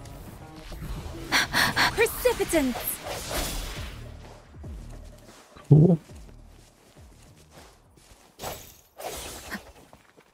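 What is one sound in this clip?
Blades swish and clang in quick strikes.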